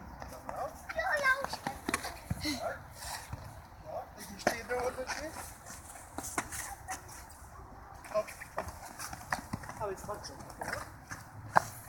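Young children call out and chatter outdoors.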